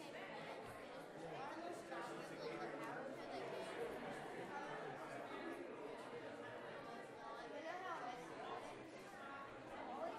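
A crowd of men and women chatter in a large echoing room.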